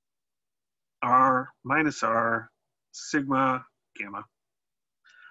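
A man speaks calmly and explains, heard close through a microphone.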